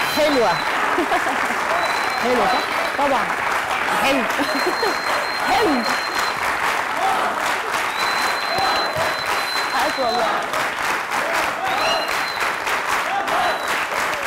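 A young woman speaks cheerfully into a microphone.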